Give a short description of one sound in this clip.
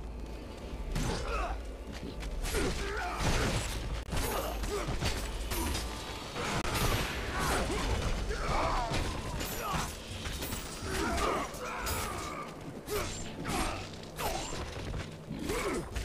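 Blades slash and clash with rapid hits in a fight.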